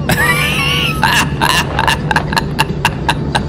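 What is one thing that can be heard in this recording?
A young man laughs loudly and heartily close to a microphone.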